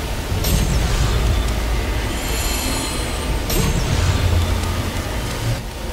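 Bright magical chimes sparkle as glowing orbs burst.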